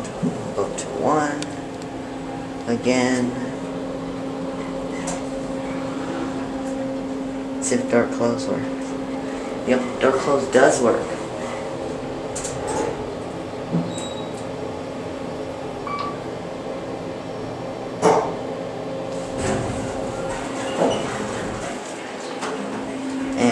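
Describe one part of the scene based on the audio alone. An elevator hums steadily.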